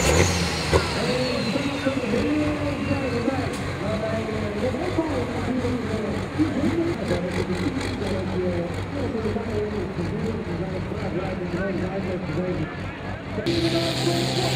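A tractor engine idles with a deep, steady rumble.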